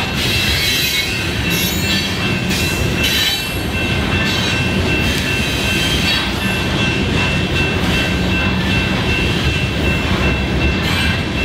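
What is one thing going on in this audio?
Steel wheels squeal and clatter on the rails.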